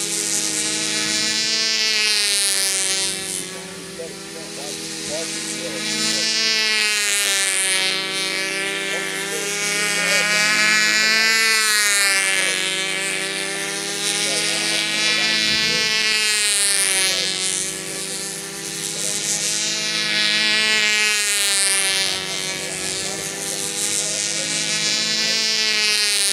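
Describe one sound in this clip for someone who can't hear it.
A small model plane's engine whines steadily, its pitch rising and falling as it circles overhead.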